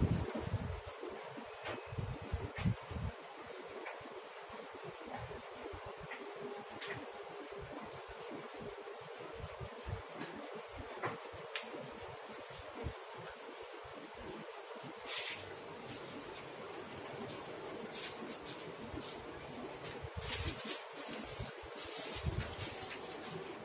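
Leather gloves rustle and creak as they are handled and pulled on.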